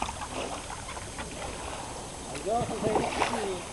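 A paddle splashes in water.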